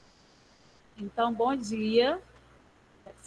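A child speaks briefly through an online call.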